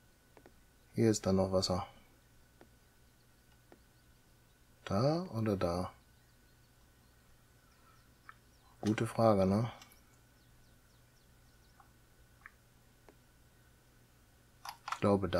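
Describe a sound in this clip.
A middle-aged man speaks briefly into a close microphone, in short bursts with pauses.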